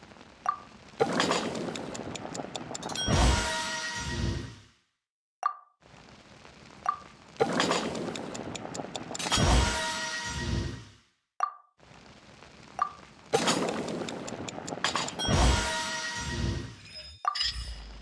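Food sizzles in a pot over a crackling fire, in three bursts.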